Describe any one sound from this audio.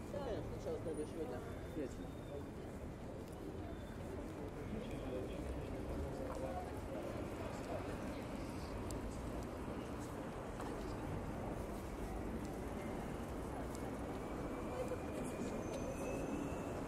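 Voices of a crowd murmur and chatter nearby, outdoors.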